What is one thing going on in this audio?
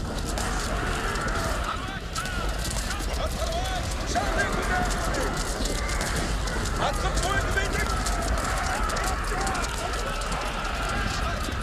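Weapons clash and clatter in a battle.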